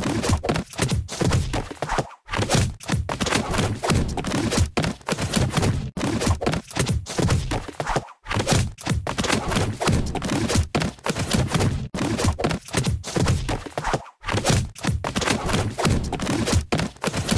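A sword clangs repeatedly against a metal shield.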